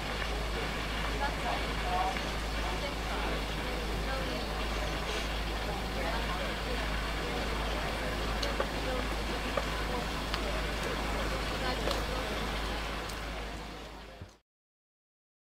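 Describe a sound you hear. A small steam engine chugs and hisses steadily.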